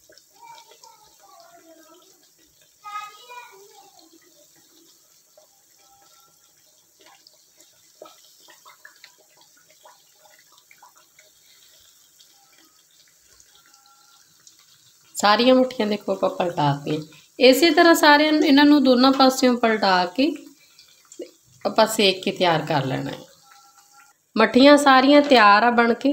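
Metal tongs clink against a metal pan.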